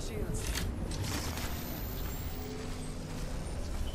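A device charges up with a rising electric hum.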